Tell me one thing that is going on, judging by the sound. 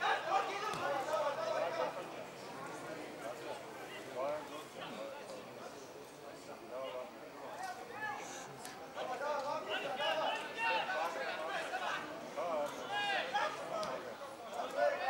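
Men shout and call out to each other across an open outdoor field.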